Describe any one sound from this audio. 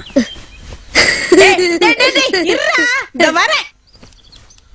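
A woman speaks loudly and with animation.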